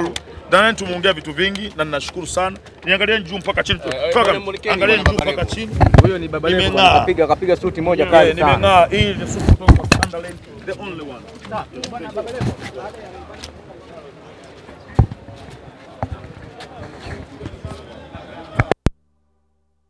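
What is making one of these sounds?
A crowd of people chatter nearby.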